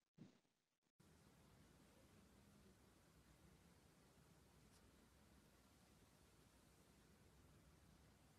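A cat purrs steadily up close.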